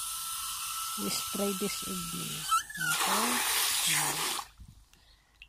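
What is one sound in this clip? Water sprays hard from a hose nozzle into a bucket of water.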